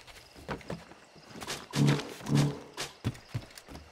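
Hands and feet scrape against wooden boards in a climb.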